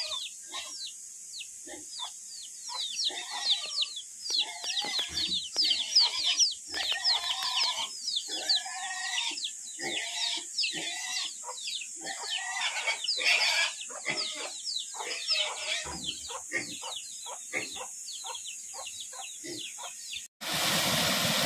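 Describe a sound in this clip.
Chickens cluck.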